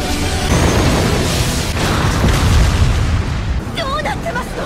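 A huge explosion roars and rumbles loudly.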